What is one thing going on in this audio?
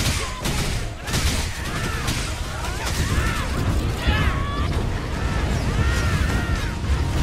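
Magic blasts and impacts burst in quick succession.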